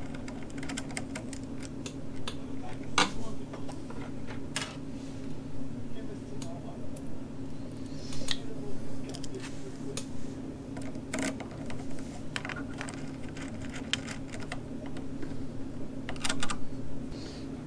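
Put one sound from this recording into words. A screwdriver taps and scrapes against metal with small clicks.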